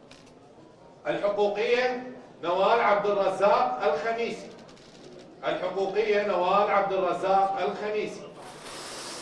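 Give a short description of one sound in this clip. A man reads out loudly into a microphone in an echoing hall.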